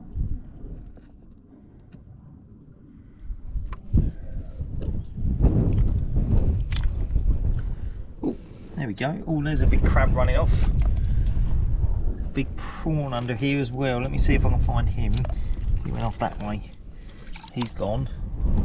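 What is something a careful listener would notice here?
Shallow water laps gently against rocks.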